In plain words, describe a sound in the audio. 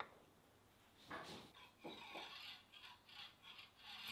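A coiled plastic grip rasps as it is twisted onto a metal rod.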